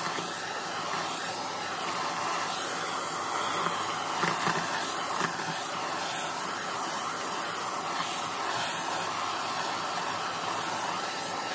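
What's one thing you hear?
Bits of confetti rattle as a vacuum sucks them up.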